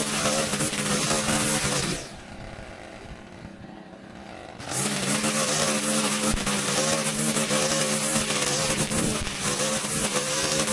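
A petrol string trimmer whines loudly while cutting grass, briefly dropping to a quiet idle.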